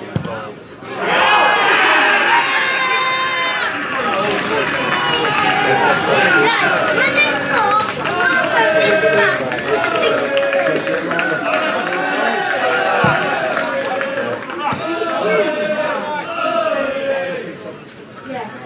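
A small crowd cheers and shouts outdoors.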